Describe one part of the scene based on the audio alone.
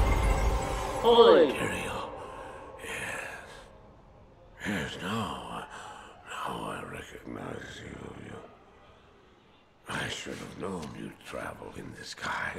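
An elderly man speaks in a strained, hoarse voice.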